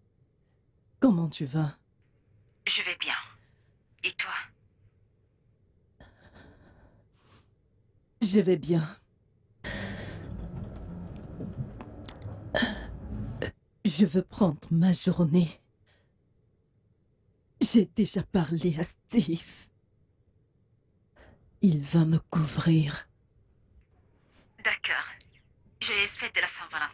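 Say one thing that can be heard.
A woman talks on a phone, close by, in a tearful and upset voice.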